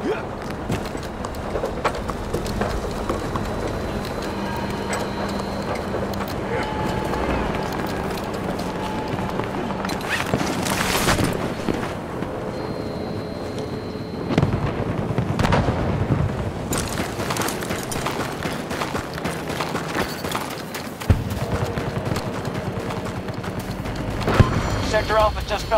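Explosions rumble and boom in the distance.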